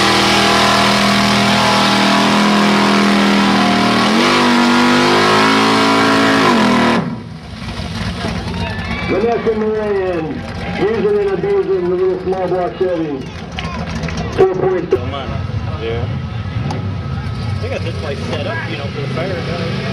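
A truck engine roars and revs hard close by.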